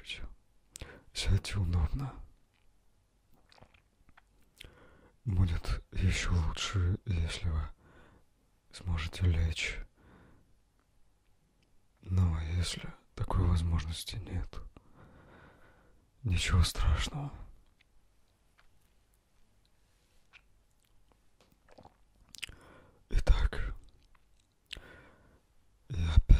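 A young man speaks calmly and close into a microphone, pausing often.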